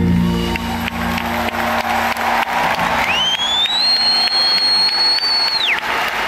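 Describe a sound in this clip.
A large crowd cheers and shouts nearby.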